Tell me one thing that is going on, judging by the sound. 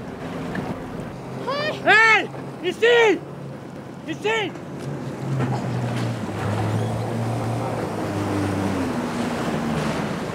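Swimmers splash in open water.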